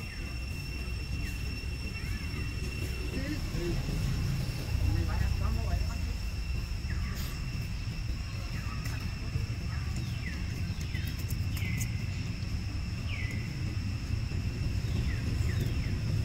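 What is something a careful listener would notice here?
A baby monkey gives short high squeaks.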